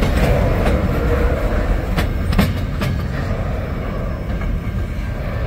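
Freight car wheels rumble and clank steadily over the rails.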